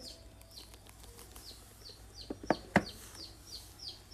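A hand taps and handles a phone.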